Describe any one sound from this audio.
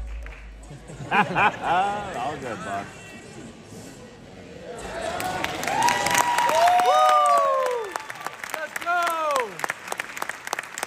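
A crowd cheers and whistles loudly in a large hall.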